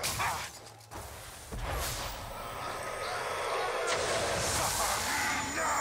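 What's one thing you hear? A ghostly magical whoosh swells and rumbles loudly.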